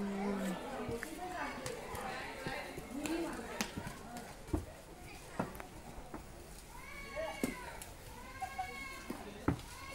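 Wooden staffs tap on the pavement.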